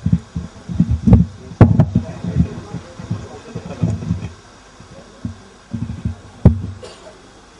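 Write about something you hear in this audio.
Thumps and knocks sound as a microphone is handled.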